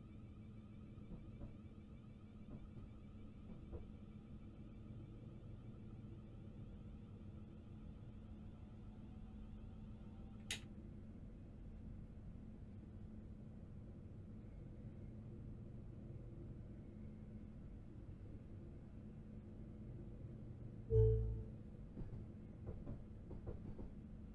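Train wheels click and clatter over rail joints and points.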